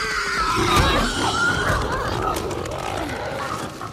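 A body falls and thuds onto a wooden floor.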